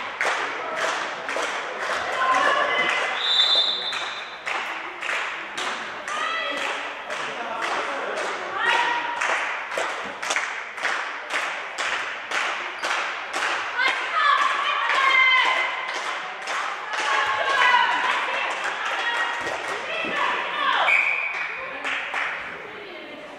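Spectators clap in a fast, steady rhythm in a large echoing hall.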